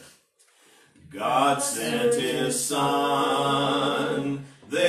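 An elderly man sings in a steady voice, close to a microphone.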